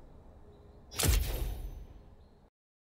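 A game menu plays a whooshing click sound.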